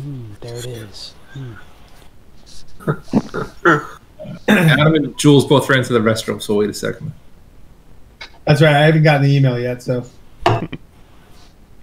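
A man talks casually over an online call.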